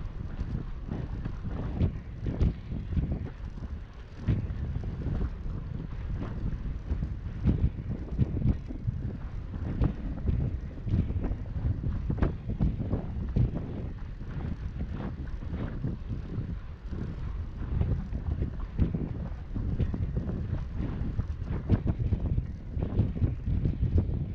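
Wind buffets loudly and rumbles.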